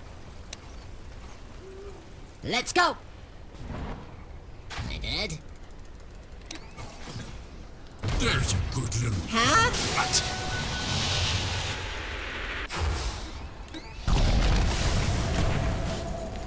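Magic blasts and weapon strikes crash in a fast fight.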